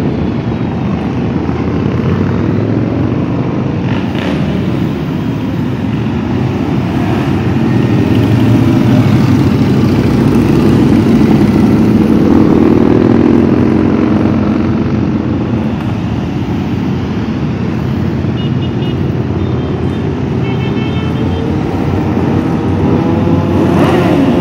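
Touring and cruiser motorcycles rumble past one after another.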